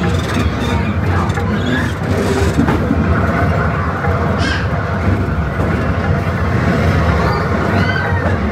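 A ride car rumbles steadily along a track.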